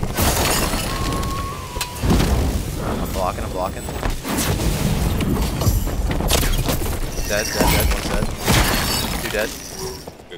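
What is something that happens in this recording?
Fire spells crackle and burst with bright crackling blasts.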